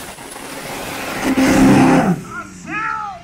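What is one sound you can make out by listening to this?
A car engine roars loudly and races away.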